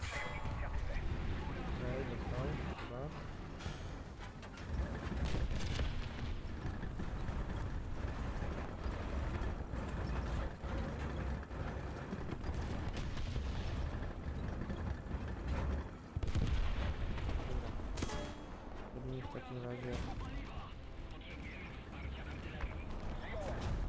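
Tank tracks clank and grind over the ground.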